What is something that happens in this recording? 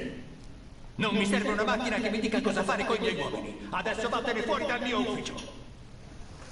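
A middle-aged man speaks angrily and forcefully.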